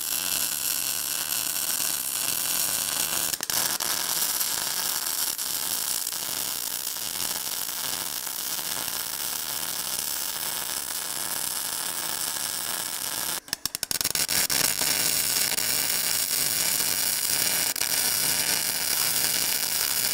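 A welding arc crackles and sizzles steadily.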